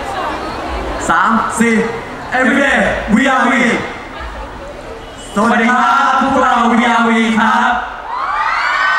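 Young men sing together through microphones over loudspeakers in a large echoing hall.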